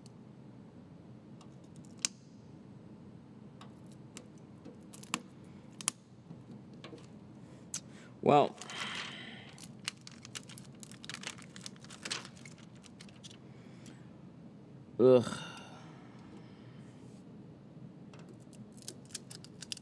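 Plastic film crinkles and rustles under fingers.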